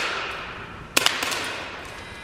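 An air pistol fires with a sharp crack.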